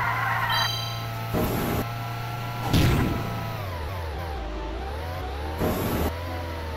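A small racing kart engine hums steadily, dipping low in pitch and then rising again.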